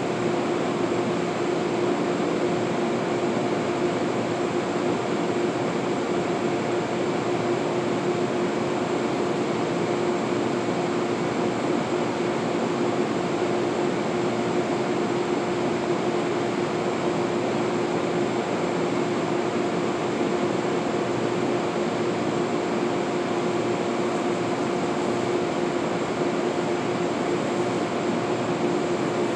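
A train idles in the distance with a steady, droning hum.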